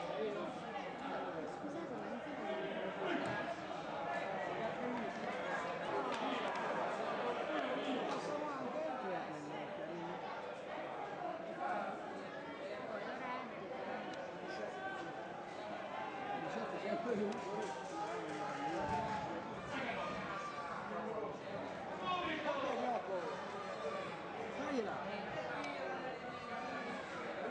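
Men call out and talk across an open football pitch.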